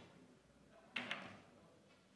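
A snooker ball knocks against a table cushion.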